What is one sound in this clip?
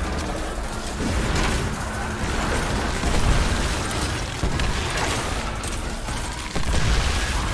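Energy blasts boom in a video game.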